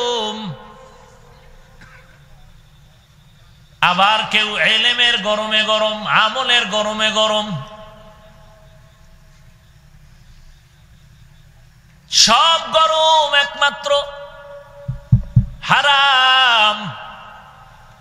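A young man preaches loudly and with fervour into a microphone, with an echo.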